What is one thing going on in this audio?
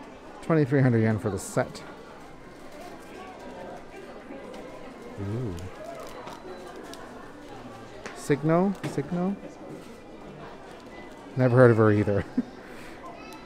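Plastic packaging rustles and crinkles in a hand.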